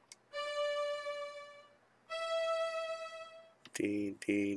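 Two clear, sustained musical notes play one after another.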